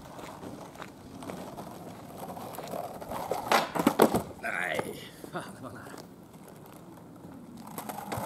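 Skateboard wheels roll over rough asphalt outdoors.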